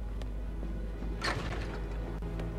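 A heavy wooden door swings open with a sharp knock.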